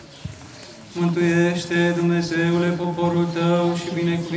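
A man chants loudly in a deep voice outdoors.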